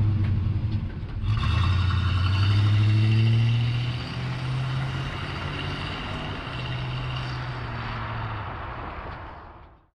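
A pickup truck's engine rumbles as the truck pulls away and fades into the distance.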